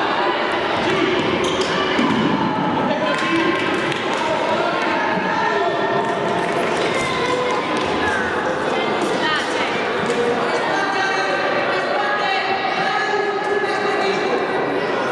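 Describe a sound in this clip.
Children and spectators chatter and call out in a large echoing hall.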